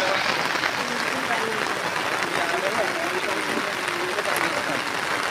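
A man talks nearby in the rain.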